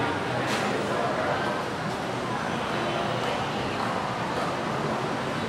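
Footsteps climb hard stairs.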